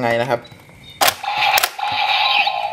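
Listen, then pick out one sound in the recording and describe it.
A plastic piece clicks into a toy belt.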